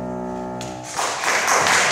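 A piano note rings out and stops.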